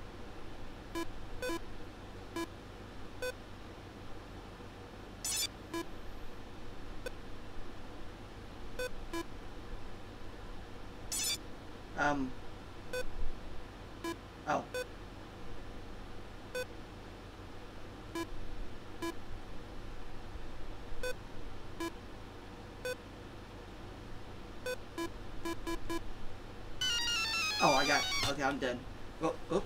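Short electronic game beeps sound at a steady, regular pace.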